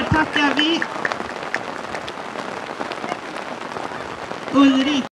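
A woman calls out to a dog in a high, cheerful voice nearby.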